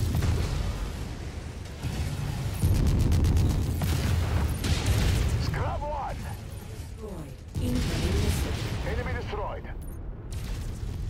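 Explosions rumble and boom heavily.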